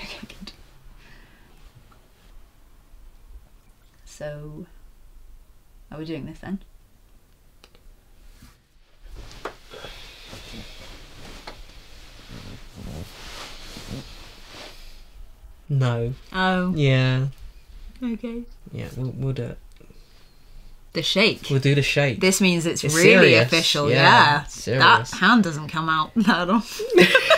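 A young woman speaks softly and laughs, close by.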